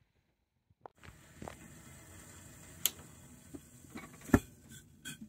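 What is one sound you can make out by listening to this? A kettle hisses softly with steam.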